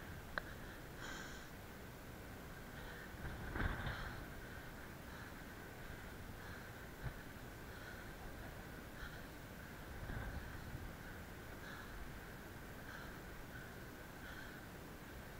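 Wind gusts across an exposed mountainside and buffets the microphone.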